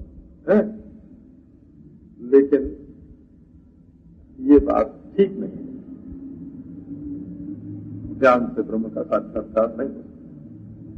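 An elderly man speaks calmly, in short phrases with pauses.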